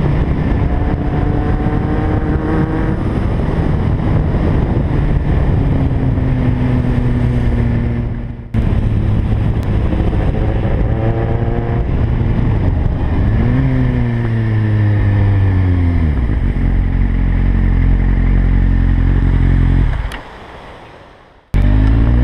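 A motorcycle engine hums and revs up and down as it rides.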